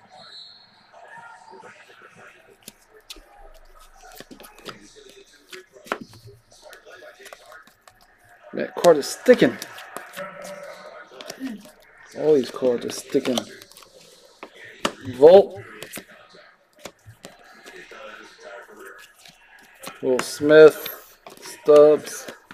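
Trading cards flick and rustle as they are shuffled through by hand.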